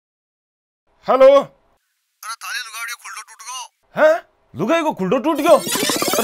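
A man speaks anxiously on a phone, close by.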